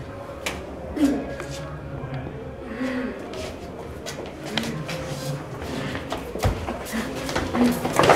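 A woman cries out and moans.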